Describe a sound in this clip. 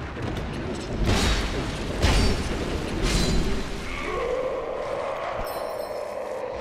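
Metal weapons clash and strike in a close fight.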